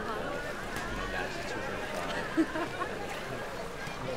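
Water splashes as swimmers move about.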